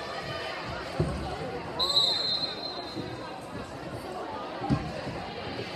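A volleyball thuds off players' hands in an echoing gym.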